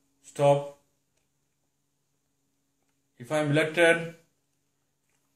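A man speaks calmly into a nearby microphone, in short phrases with pauses.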